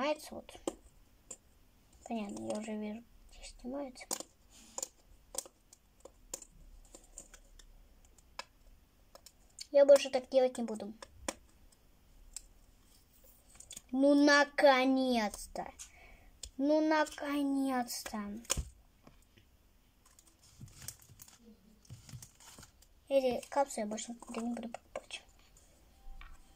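A plastic toy ball clicks and rattles in small hands.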